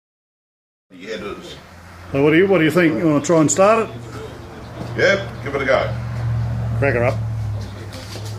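An elderly man talks calmly close by.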